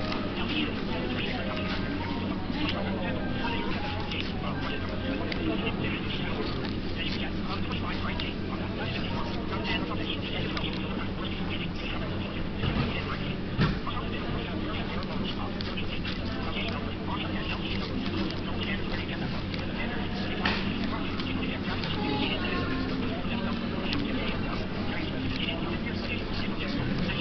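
Paper rustles and crinkles in a man's hands.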